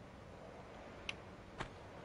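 Footsteps tap twice on a stone floor.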